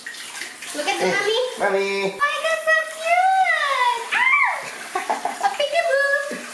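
Water splashes in a small tub.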